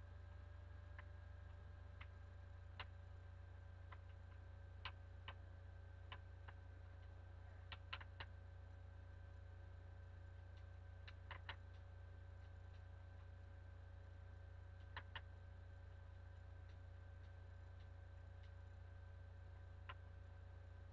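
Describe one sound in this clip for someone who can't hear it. Game menu clicks sound sharply now and then.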